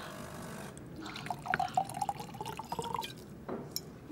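Wine pours into a glass, rising in pitch as it fills.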